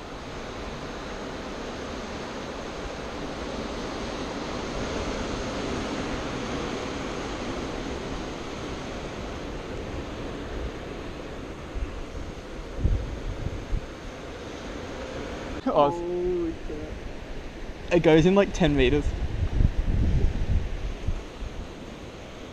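Waves wash against rocks far below.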